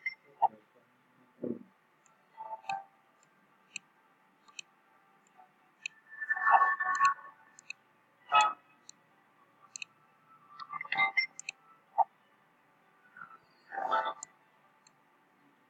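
Short bright game chimes ring out as coins are collected.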